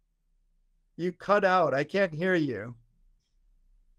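A man speaks cheerfully over an online call.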